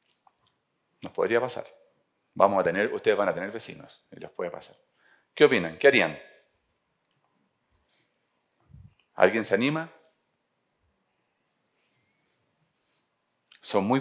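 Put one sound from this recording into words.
A man speaks calmly through a headset microphone, pausing between phrases.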